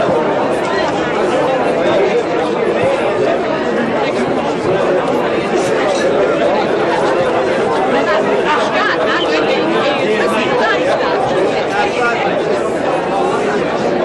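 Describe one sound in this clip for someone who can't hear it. A crowd of men and women chatter loudly all around in a large hall.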